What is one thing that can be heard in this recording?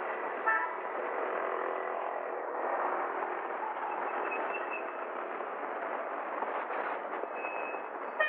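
Car engines hum as traffic moves along a busy street.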